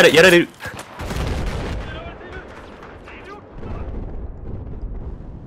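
A deep explosion rumbles and debris scatters.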